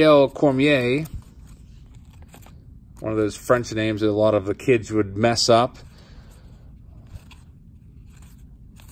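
Trading cards slide and flick against each other in someone's hands.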